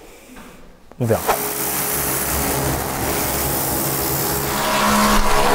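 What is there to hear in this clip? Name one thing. A pressure washer sprays water with a steady hiss.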